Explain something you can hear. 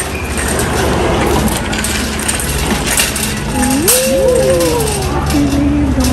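A shopping cart rolls and rattles over a hard floor.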